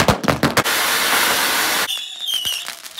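A fountain firework sprays and hisses loudly.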